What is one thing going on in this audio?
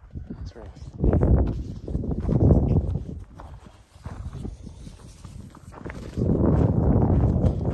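Footsteps crunch on dry gravelly ground.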